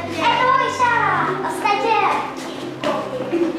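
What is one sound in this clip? A young girl calls out nearby.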